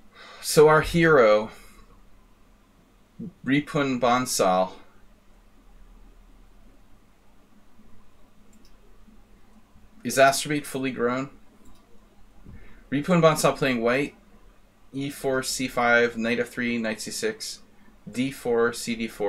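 A middle-aged man talks calmly and with animation into a close microphone, in short bursts with pauses.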